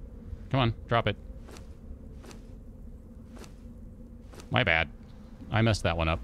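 Short game clicks sound as items are moved in an inventory.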